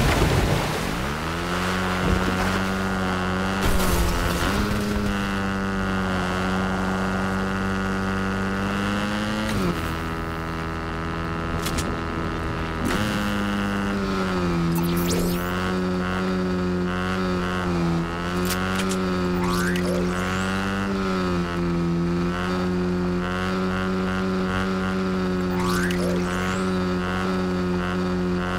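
A motorbike engine hums steadily and revs up and down.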